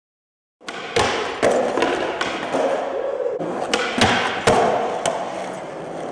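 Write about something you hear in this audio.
A skateboard clacks and slaps against the floor.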